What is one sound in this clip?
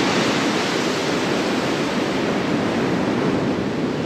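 Waves wash against a ship's hull.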